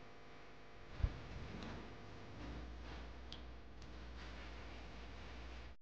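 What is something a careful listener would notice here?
Fruit thuds into a plastic bowl.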